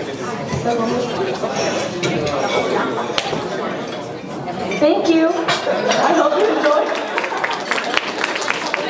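A young woman speaks into a microphone over loudspeakers in a large hall.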